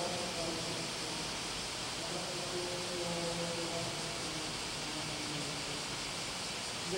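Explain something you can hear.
A man chants a prayer through a microphone in an echoing hall.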